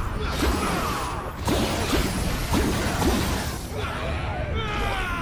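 Zombies groan and moan close by.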